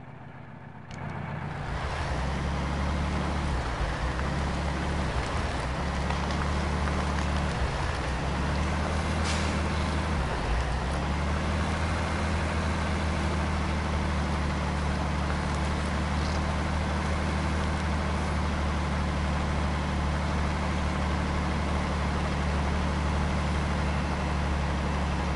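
Tyres crunch over a rough dirt road.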